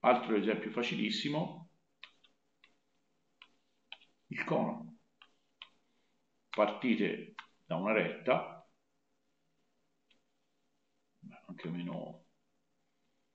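A young man speaks calmly through a microphone, in short bursts with pauses.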